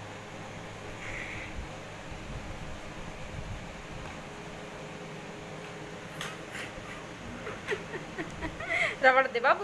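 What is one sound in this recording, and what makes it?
A parrot chirps and squawks loudly close by.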